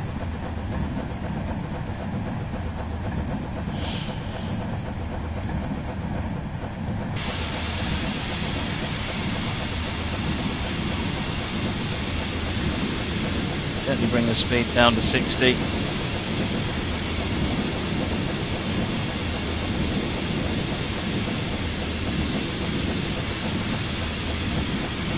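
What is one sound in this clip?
A steam locomotive rumbles steadily along the rails.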